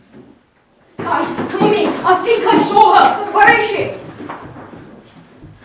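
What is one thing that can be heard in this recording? Teenagers talk loudly nearby.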